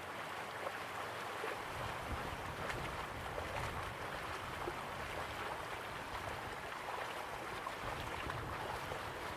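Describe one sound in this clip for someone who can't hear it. Water rushes and roars steadily.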